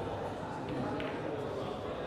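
Billiard balls clack together on the table.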